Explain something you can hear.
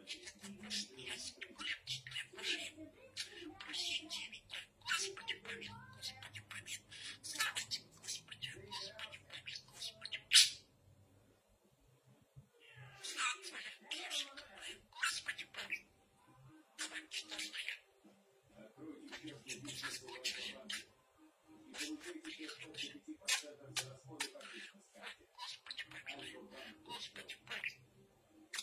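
A budgerigar chatters and warbles close by.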